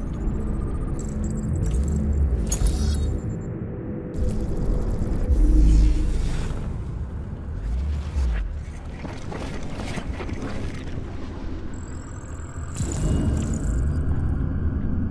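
Electronic interface tones chime and whoosh.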